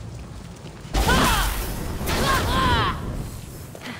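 A magic blade swooshes with a crackling burst.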